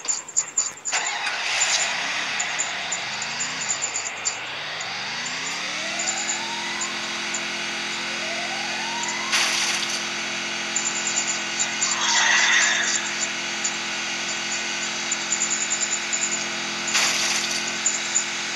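A car engine hums and revs up as it speeds along.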